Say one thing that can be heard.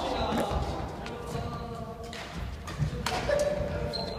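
A badminton racket hits a shuttlecock.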